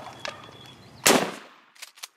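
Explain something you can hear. A shotgun fires a single blast outdoors.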